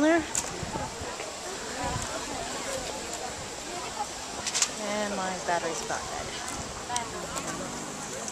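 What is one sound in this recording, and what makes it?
Several adults chat nearby outdoors, heard amid a low murmur of voices.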